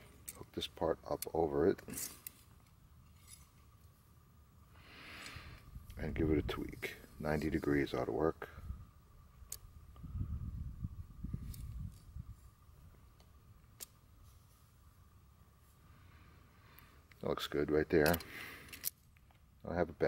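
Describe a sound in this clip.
Pliers click and snap against a metal wire clip.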